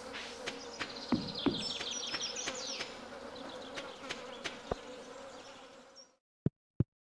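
Water flows and splashes gently outdoors.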